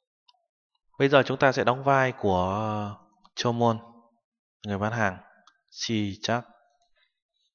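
A young man speaks calmly into a nearby microphone.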